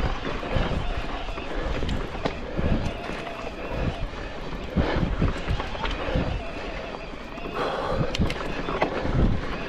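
Tyres crunch and rattle over loose stones on a rough dirt track.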